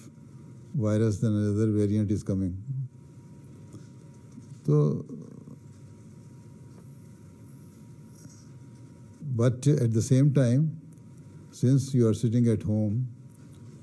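An elderly man reads aloud calmly into a microphone, with long pauses.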